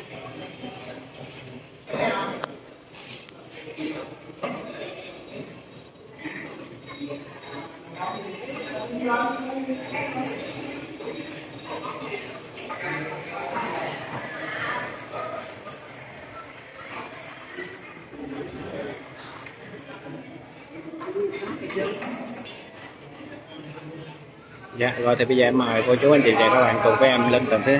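Adult men and women chat nearby in a busy indoor room, growing louder and livelier near the end.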